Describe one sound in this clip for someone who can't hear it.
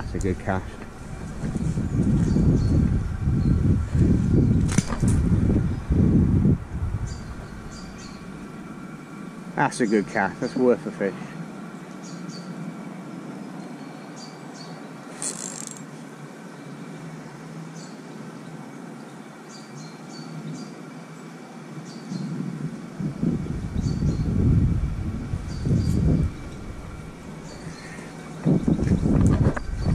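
Wind gusts loudly across an open riverbank outdoors.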